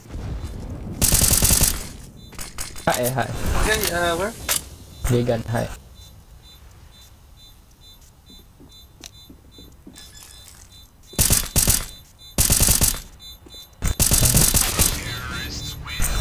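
Rifle gunfire rings out in sharp, rapid bursts.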